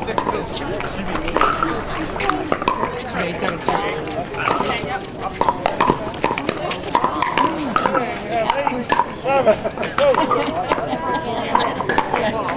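Several adults talk nearby in the open air.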